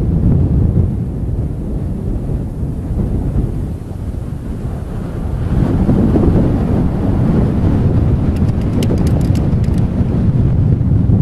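Wind rumbles steadily across open ground.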